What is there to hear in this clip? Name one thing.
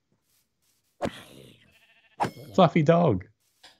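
A sword strikes a zombie with a sharp thud.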